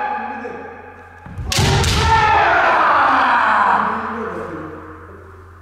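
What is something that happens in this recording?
A young man lets out a long, loud shout that echoes through the hall.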